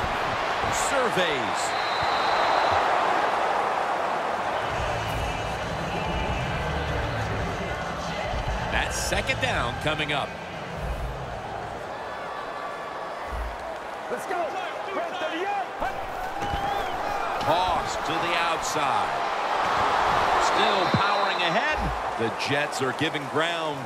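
A large stadium crowd roars and cheers, swelling loudly at times.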